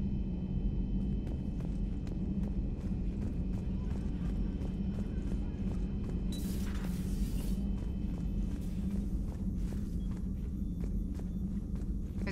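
Footsteps ring on a metal floor.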